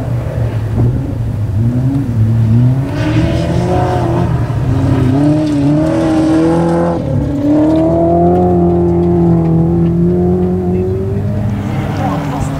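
A rally car engine revs hard and roars as the car slides through a bend.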